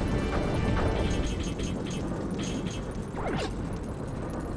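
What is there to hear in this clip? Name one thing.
Laser blasts fire in quick bursts from a video game.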